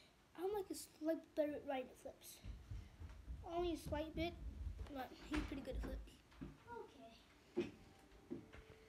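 A boy speaks close by, quietly and casually.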